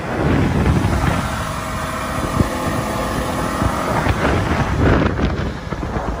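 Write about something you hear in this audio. Water splashes and churns behind a moving boat.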